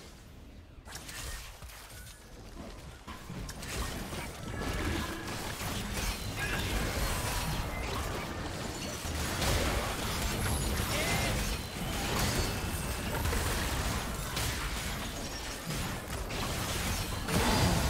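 Spells and blows from a computer game fight clash and crackle.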